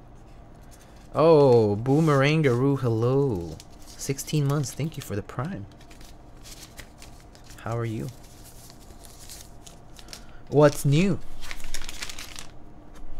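Plastic film crinkles and rustles under hands.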